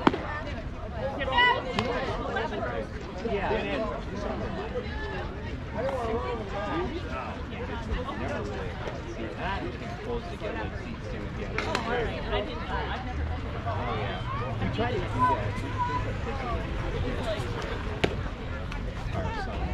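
Young girls chatter and call out outdoors.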